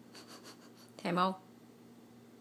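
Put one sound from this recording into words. A dog lets out a short, high whine close by.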